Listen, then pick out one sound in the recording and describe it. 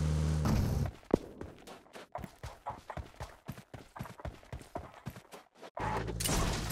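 Footsteps crunch quickly on sand.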